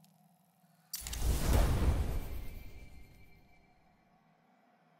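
A loud rushing whoosh swells and fades away.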